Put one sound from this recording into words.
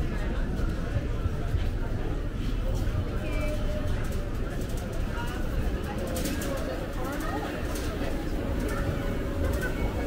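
A murmur of many voices fills a large echoing hall.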